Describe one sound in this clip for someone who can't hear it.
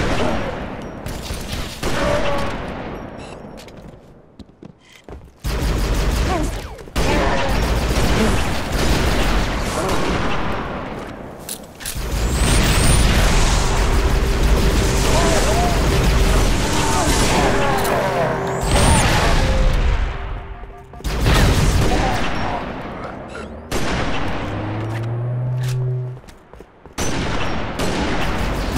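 A sniper rifle fires sharp, booming shots.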